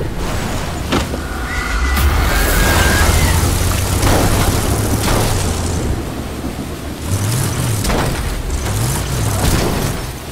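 Tyres crunch over twigs and dirt.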